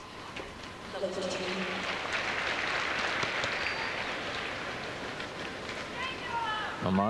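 A crowd applauds loudly and then fades.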